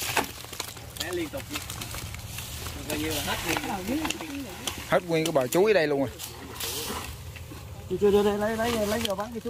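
Several men talk and call out loudly close by.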